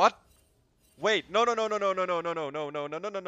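A young man sings loudly close to a microphone.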